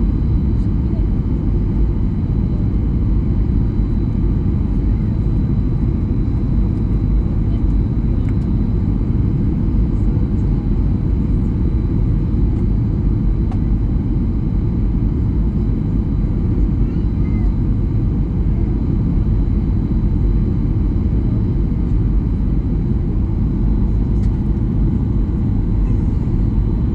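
A jet airliner's engines roar steadily from inside the cabin.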